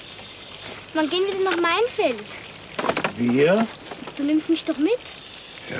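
A child speaks in a high, questioning voice close by.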